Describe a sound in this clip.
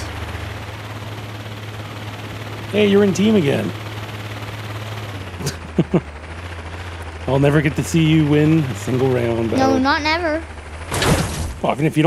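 A glider's propellers hum steadily, then stop.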